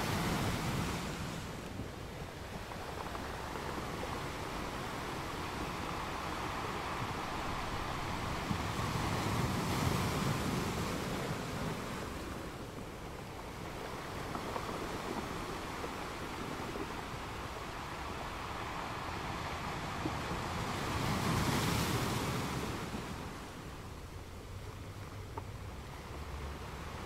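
Foamy water washes and hisses between the rocks.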